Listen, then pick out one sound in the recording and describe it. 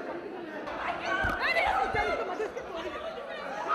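A young woman speaks excitedly close by.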